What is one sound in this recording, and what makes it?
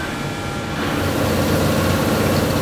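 Factory machinery hums steadily.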